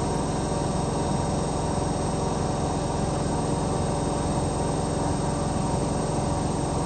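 Water sloshes inside a washing machine drum.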